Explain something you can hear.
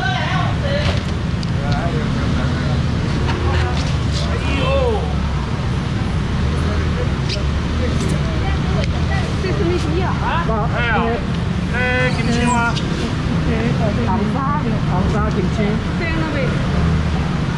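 Several people chatter in the background.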